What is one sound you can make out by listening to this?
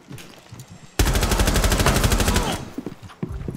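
A rifle fires a rapid burst of shots.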